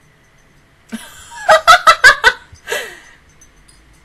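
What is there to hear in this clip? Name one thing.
A young woman laughs loudly and close into a microphone.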